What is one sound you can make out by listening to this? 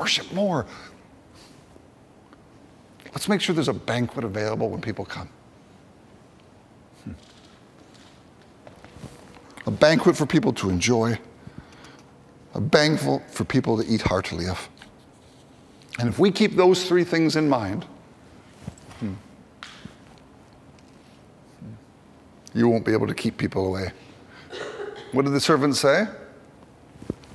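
A middle-aged man speaks calmly into a microphone in bursts with long pauses, heard through a loudspeaker in a large room.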